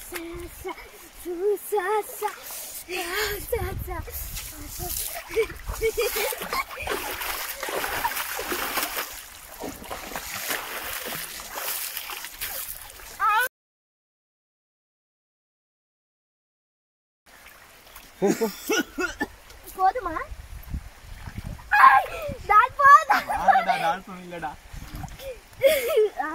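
A boy shouts and laughs close by.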